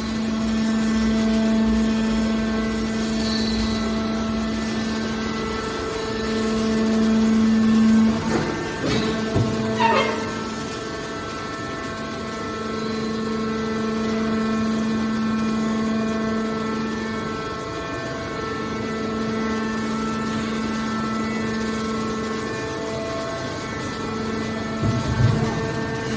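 A hydraulic baling machine hums steadily with a droning whine.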